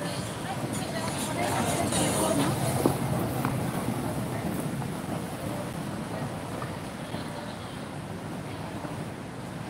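Roller skate wheels roll and rumble on smooth paving.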